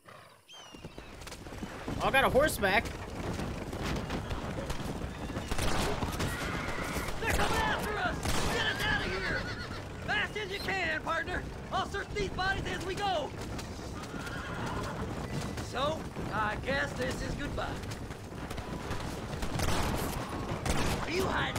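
A horse-drawn wagon rumbles over a dirt track.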